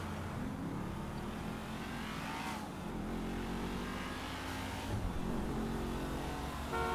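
A car engine hums steadily as the car drives fast.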